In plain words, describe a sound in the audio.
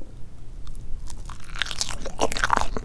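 A woman chews soft cake close to a microphone with wet, sticky mouth sounds.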